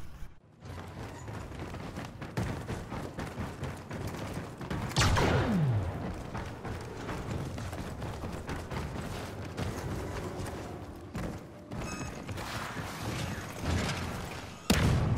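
Footsteps tread quickly on a hard floor.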